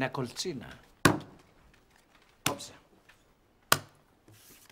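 Domino tiles clack sharply on a wooden table.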